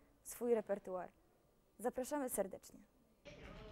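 A young woman sings in a clear, high voice.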